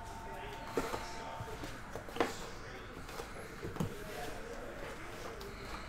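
Card stock slides and rustles out of a box.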